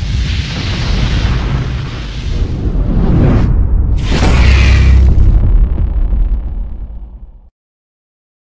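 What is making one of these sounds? Flames roar and whoosh past.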